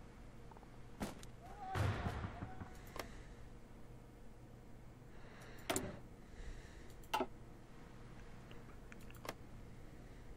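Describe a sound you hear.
Soft game interface clicks sound now and then.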